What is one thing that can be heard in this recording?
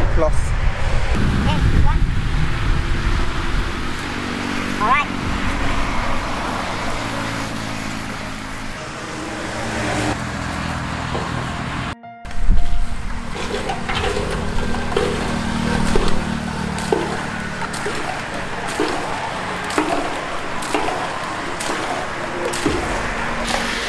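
Water gushes out of a pipe and splashes onto a drum.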